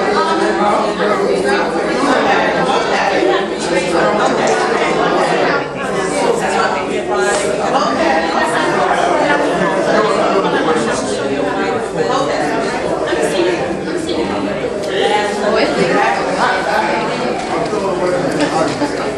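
A crowd of men and women talk and chatter all around in an echoing hall.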